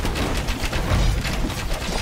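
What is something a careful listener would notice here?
Swords clash and clang in a noisy battle.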